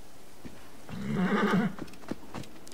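Footsteps run quickly over sand.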